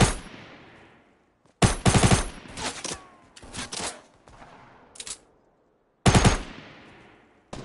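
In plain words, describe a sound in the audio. Gunshots fire in quick bursts and echo away.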